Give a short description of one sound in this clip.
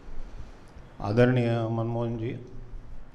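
An older man speaks through a microphone in a steady, chanting voice.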